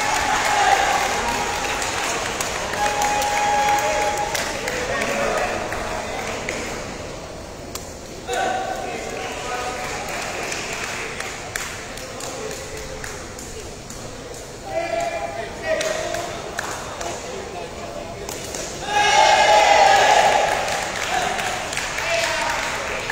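A crowd of people chatters and cheers in a large echoing hall.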